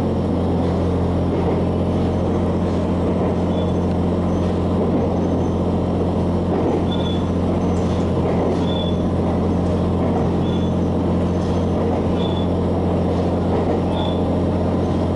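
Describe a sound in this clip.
Train wheels squeal and click on the rails.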